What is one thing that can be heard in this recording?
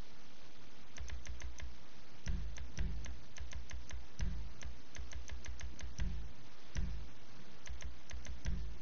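Short electronic clicks tick in quick bursts.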